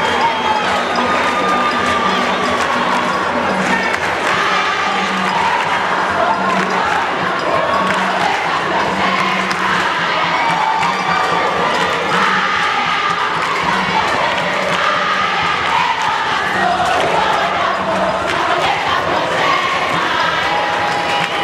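A large crowd of young people sings and chants loudly.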